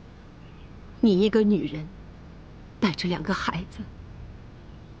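A middle-aged woman speaks in a worried voice, close by.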